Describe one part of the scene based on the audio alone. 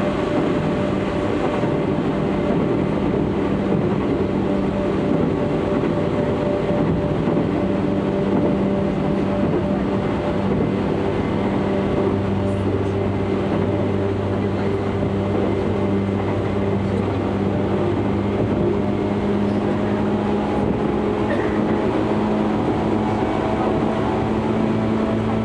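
A train rumbles and hums steadily from inside a carriage.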